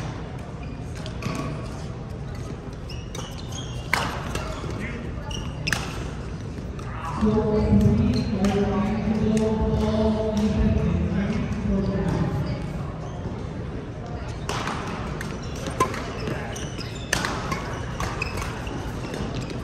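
Shoes squeak on the court floor.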